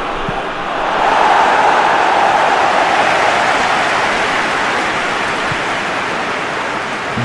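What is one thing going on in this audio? A stadium crowd roars louder as an attack nears the goal, then slowly settles.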